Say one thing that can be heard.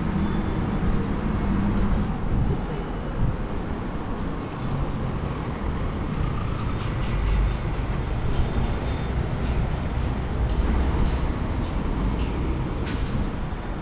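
Car engines hum and tyres roll past on a busy street outdoors.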